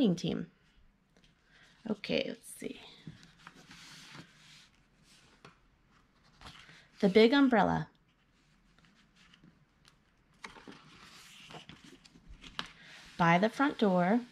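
Paper pages rustle as they are turned.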